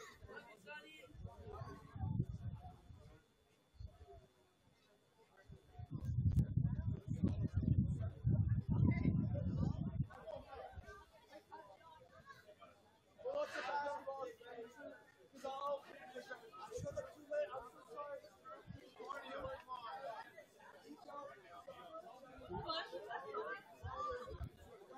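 Young people in a team huddle talk and shout together at a distance outdoors.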